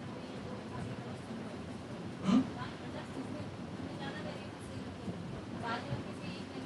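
A man speaks calmly to a group in a room with some echo.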